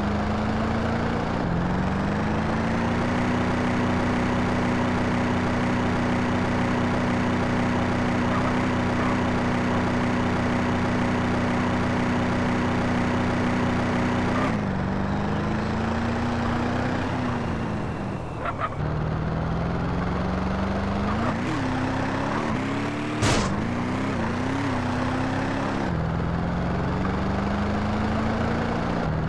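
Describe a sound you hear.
Tyres rumble over rough ground.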